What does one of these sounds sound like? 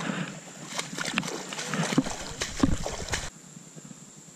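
A fish thrashes and splashes in shallow water.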